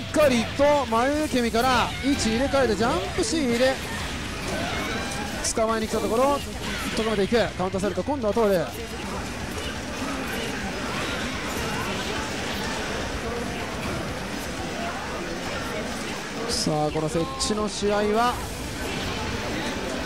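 Video game fighters trade hits with sharp smacks and blasts.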